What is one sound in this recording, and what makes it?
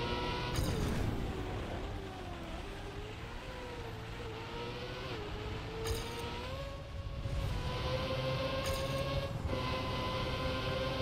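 A racing car engine hums at high pitch, rising and dipping as it speeds along.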